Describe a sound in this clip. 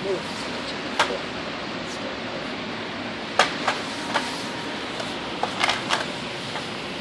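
A plastic treat puzzle rattles and clicks as a dog noses at it.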